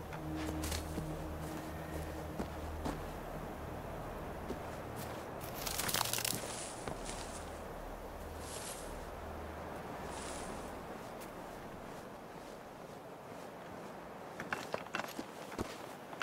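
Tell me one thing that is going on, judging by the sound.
Footsteps crunch over gravel and leaves.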